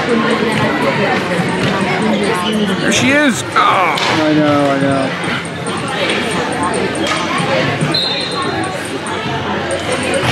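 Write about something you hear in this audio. Hockey sticks clack against a ball.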